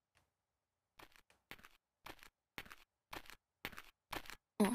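Footsteps clack steadily on a hard floor.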